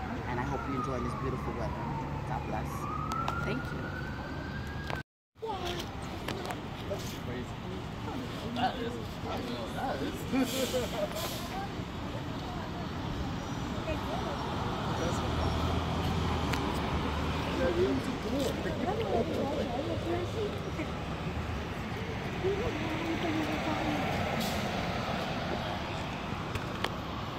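Traffic passes on a street outdoors.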